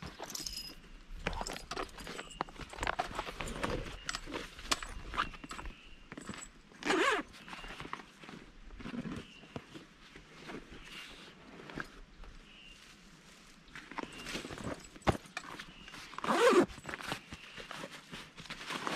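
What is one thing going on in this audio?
Canvas rustles as a backpack is handled.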